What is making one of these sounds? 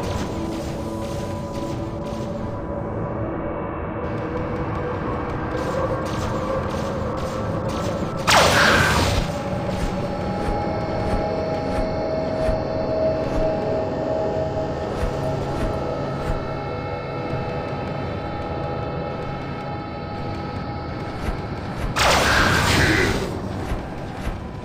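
A giant robot stomps with heavy mechanical footsteps.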